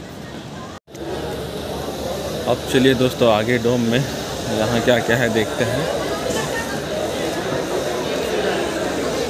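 A crowd murmurs and chatters close by.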